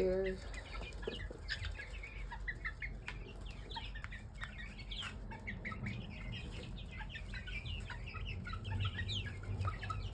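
A flock of young chicks peeps and cheeps.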